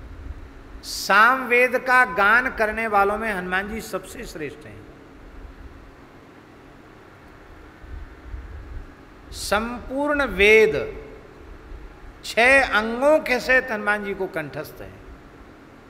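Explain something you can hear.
An older man speaks with animation through a microphone, in short bursts with pauses.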